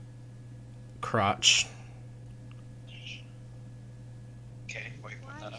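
A young man speaks in short bursts over an online call.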